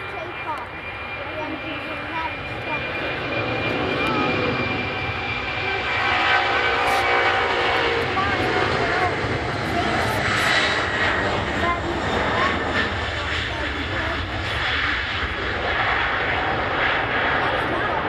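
A jet airliner's engines roar loudly as it takes off and climbs away.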